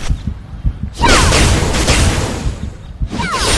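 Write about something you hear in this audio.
A fiery blast bursts with a loud boom.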